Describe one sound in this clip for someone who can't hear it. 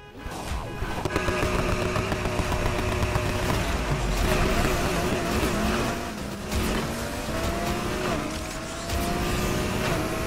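Rain hisses on a wet road.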